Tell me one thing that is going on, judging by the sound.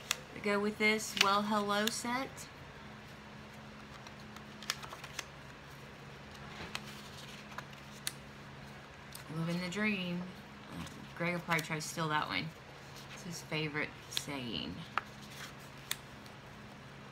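Paper cards softly rustle and tap as they are flipped through by hand.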